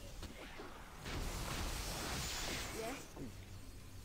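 A magical spell shimmers and hisses briefly.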